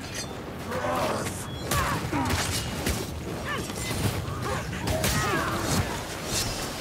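Axe blows land with sharp, heavy thuds.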